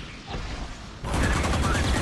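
Rapid gunshots fire in a video game.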